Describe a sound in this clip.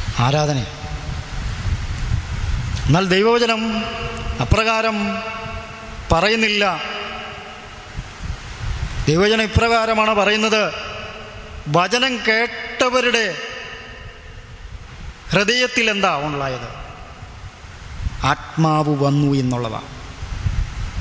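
A man sings slowly in phrases through a microphone, close by.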